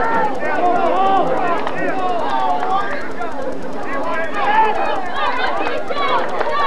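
A crowd of spectators talks and calls out nearby outdoors.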